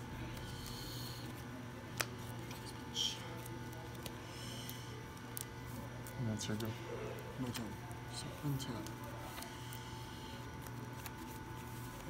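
Playing cards slide and tap on a table.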